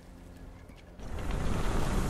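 A heavy cloth cape swishes and rustles.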